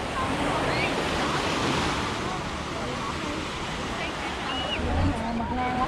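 Waves wash onto a sandy shore.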